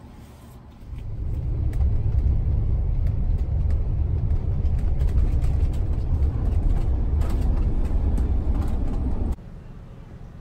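A bus engine rumbles steadily while driving.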